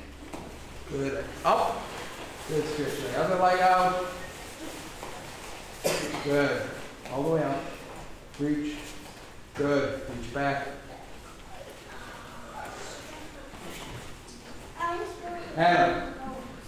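A man calls out loud commands in an echoing room.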